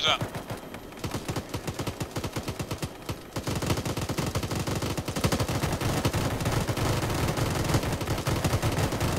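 A helicopter's rotor thumps rapidly and grows louder.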